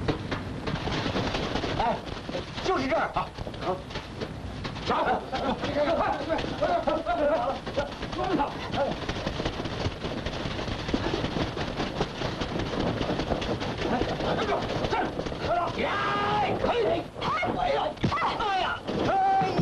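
A crowd of men shouts as they run.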